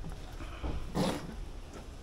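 A knife cuts meat on a plastic cutting board.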